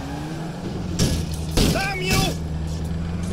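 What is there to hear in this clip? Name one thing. A car crashes into a wall with a loud bang.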